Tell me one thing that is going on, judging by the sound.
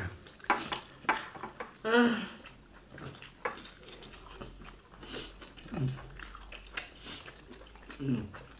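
A man chews food noisily close by.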